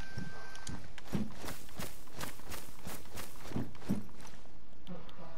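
Footsteps thud on hard ground at a steady walking pace.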